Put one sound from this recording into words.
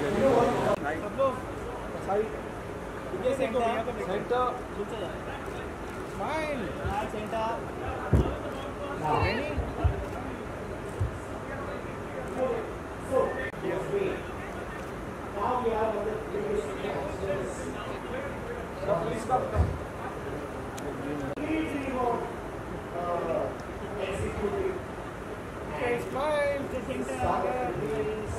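Several people talk at once nearby, men and women calling out in a lively crowd.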